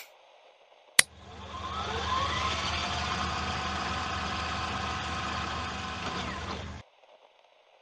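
A tape rewinds with a rising, warbling whir.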